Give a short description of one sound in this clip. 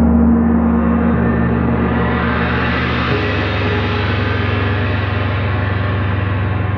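A big gong crashes and shimmers, growing brighter and louder.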